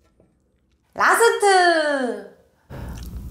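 A young woman hums with delight close to a microphone.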